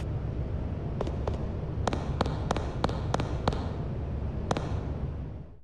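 Footsteps clatter on a hard floor.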